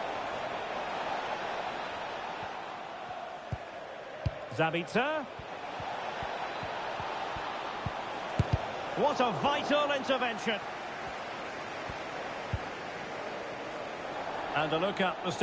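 A large crowd roars and murmurs steadily in a stadium.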